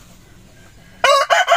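A rooster crows loudly close by.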